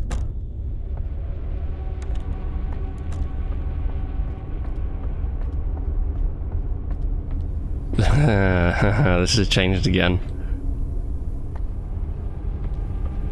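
Footsteps thud on a creaky wooden floor.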